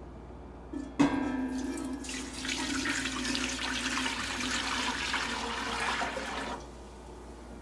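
Water pours from a glass jug into a metal pot.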